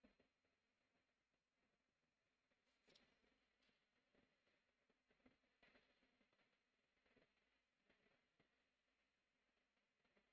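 A marker squeaks and scratches on paper in short strokes.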